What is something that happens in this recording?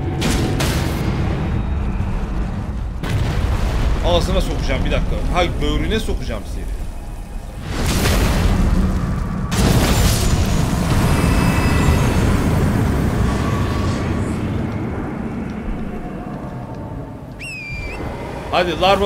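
A huge beast crashes and rumbles close by.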